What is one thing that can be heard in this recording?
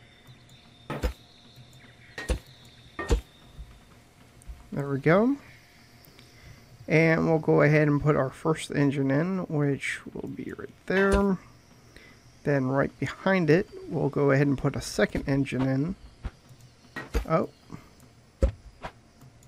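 Parts click into place with short, sharp knocks.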